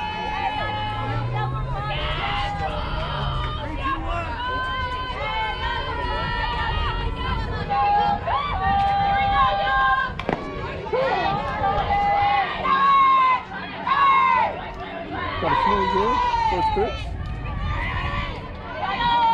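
Young girls shout and cheer loudly outdoors.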